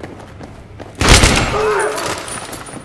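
A gun fires a loud burst of shots that echo around a hard room.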